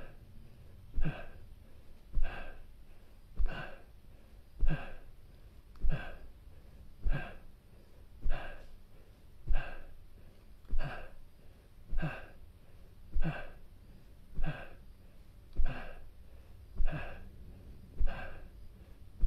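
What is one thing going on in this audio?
A young man exhales sharply and rhythmically, close by, about once every second.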